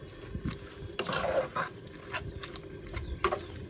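A metal spoon scrapes and stirs inside a pot.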